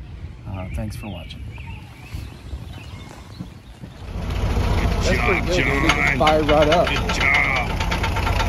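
A man speaks casually close by.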